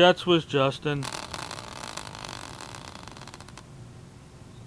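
A small wheel spins with a fast rattling whir that slows and stops.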